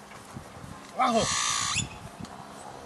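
A man calls out loudly nearby, outdoors.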